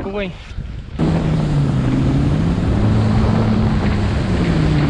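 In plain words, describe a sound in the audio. Water rushes steadily past a moving boat.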